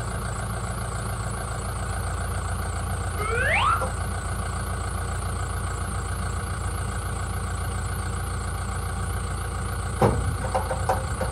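A tractor engine runs steadily nearby.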